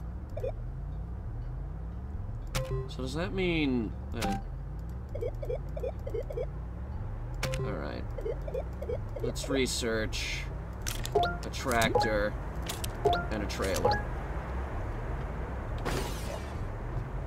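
Electronic menu beeps and chirps sound as options are clicked through.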